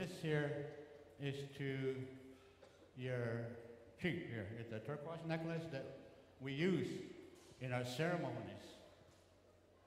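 An elderly man speaks slowly into a microphone, heard through a loudspeaker.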